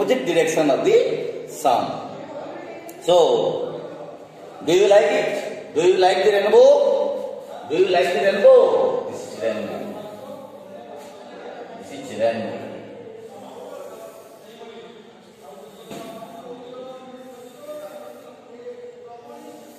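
A middle-aged man speaks loudly and with animation in an echoing room.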